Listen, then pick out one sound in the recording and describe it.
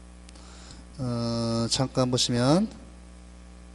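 A man speaks briefly and loudly through a microphone, close by.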